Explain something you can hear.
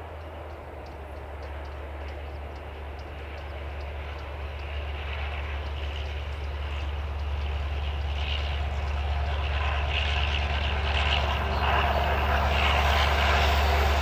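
A train approaches, its rumble growing steadily louder.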